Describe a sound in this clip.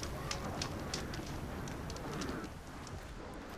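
A fire crackles and pops.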